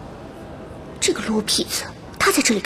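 A young woman speaks in a low, wondering voice close by.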